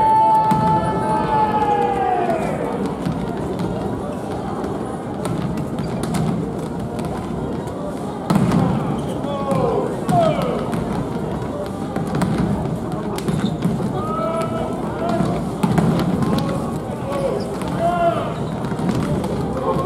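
A volleyball slaps against hands in an echoing hall.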